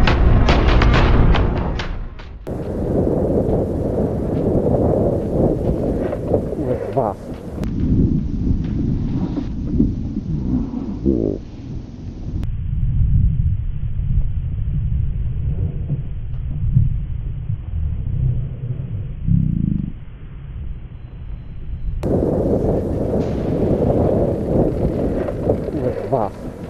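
Wind rushes past a moving bicycle.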